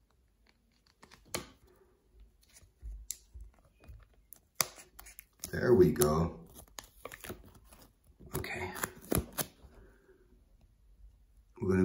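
Fingers tap and scrape against a plastic card sleeve.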